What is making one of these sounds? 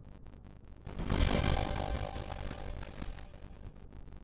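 A game's sound effect bursts loudly when a character casts a glowing spell.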